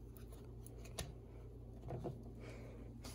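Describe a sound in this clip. A plastic lid clicks open.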